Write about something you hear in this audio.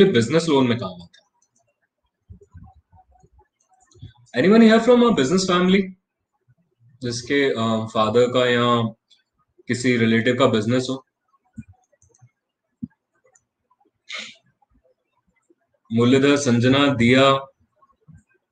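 A young man speaks calmly and clearly into a close microphone, pausing between phrases.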